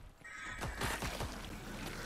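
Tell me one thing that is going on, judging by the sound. A gun fires in a game.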